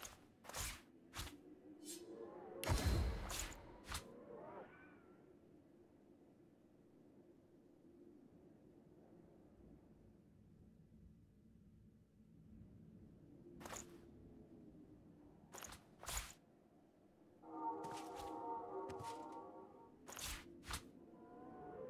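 Short interface clicks sound now and then as items are picked.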